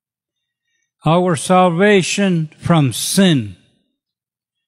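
An elderly man speaks with feeling into a microphone, heard through a loudspeaker.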